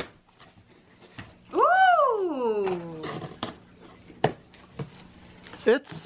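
Cardboard box flaps scrape and thump open.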